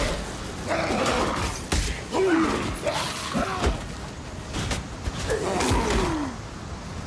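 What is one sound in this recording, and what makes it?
Weapons clash and slash in quick bursts.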